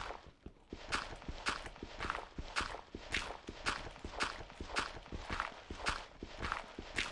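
A pickaxe chips at stone in quick, steady repeated blows.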